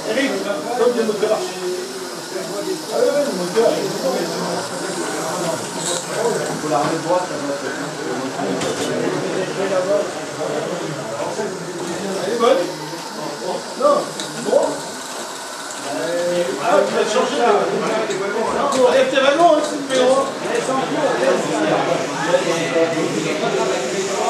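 Model trains rumble and click along their tracks.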